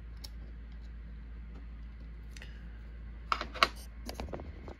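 Metal tweezers click against small brass pins.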